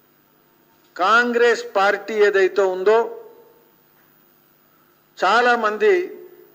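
A man speaks calmly into a microphone, close by.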